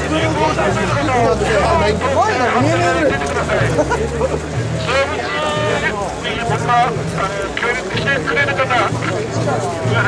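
Many voices shout and call out nearby.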